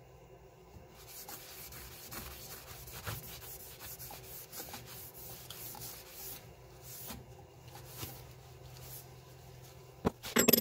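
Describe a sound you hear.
A cloth rubs and hisses against spinning wood.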